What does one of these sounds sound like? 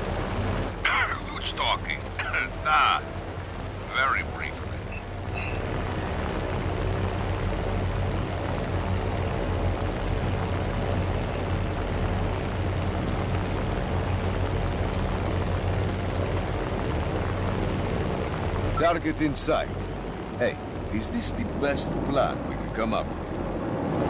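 Propeller engines drone steadily and loudly.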